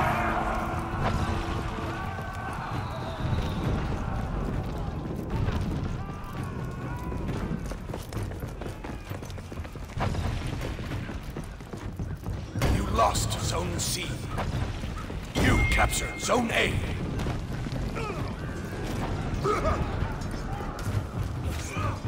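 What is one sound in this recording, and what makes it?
Armored footsteps thud and clank as a warrior runs.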